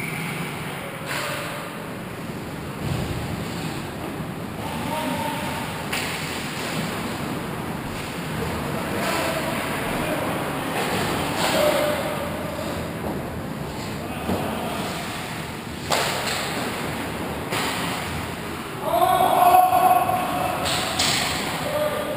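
Hockey sticks click and slap against a puck.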